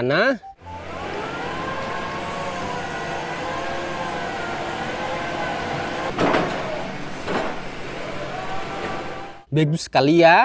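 A drilling rig's engine hums steadily.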